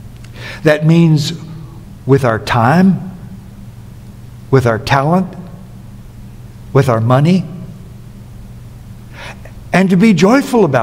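An older man preaches with emphasis through a microphone, in short phrases with pauses.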